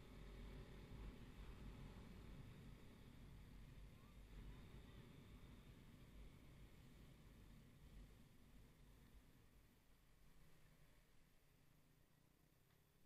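Wind rumbles against a nearby microphone, easing as the ride slows.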